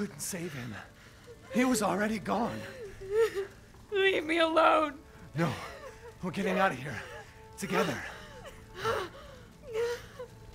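A young woman speaks anxiously.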